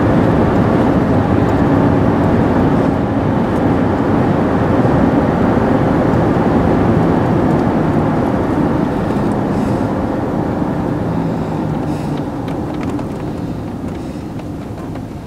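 A car engine hums steadily inside the cabin while driving.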